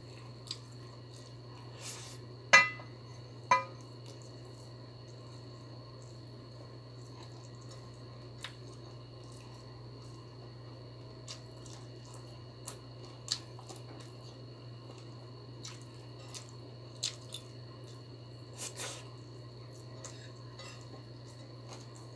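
A woman chews food close by with wet smacking sounds.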